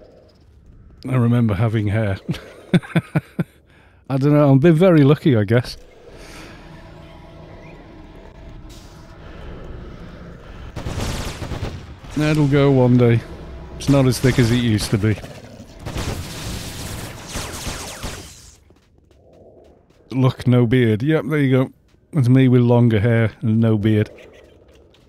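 A man talks with animation close to a microphone, in bursts.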